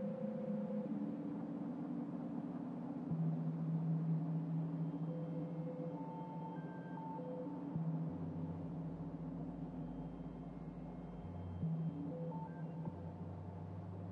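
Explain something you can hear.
Machines hum and whir steadily, with drones that shift in pitch.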